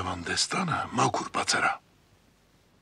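An elderly man speaks gruffly and close by.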